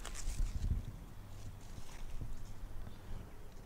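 A small hand tool scrapes and digs in soil.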